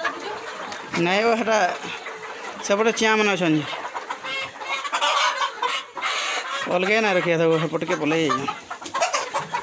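Roosters crow loudly nearby.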